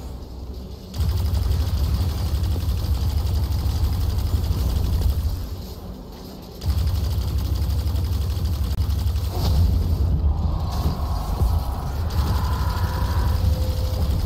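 Rapid gunfire booms and rattles.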